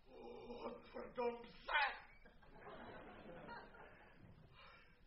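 A man cries out and groans loudly.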